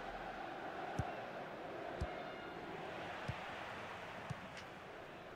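A football is kicked with short dull thumps.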